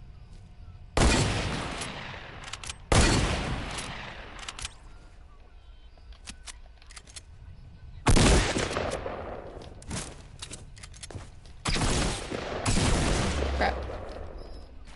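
Loud gunshots fire with booming echoes.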